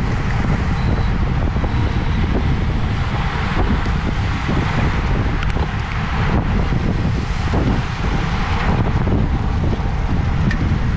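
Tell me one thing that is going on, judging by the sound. Wind rushes loudly over the microphone.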